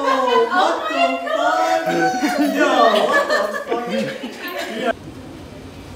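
Several young women shout and squeal excitedly, close by.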